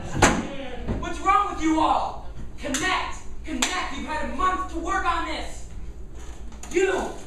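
A man speaks with animation, heard from a distance in a room.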